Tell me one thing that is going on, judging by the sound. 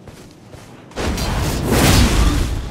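A loud crashing blow lands.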